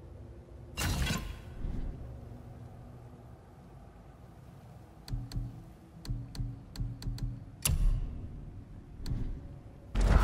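Short soft clicks tick as menu options change.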